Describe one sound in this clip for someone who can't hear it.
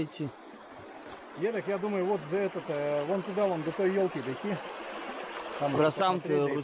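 A stream rushes and gurgles nearby.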